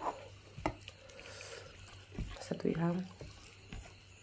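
Liquid pours from a cup onto rice.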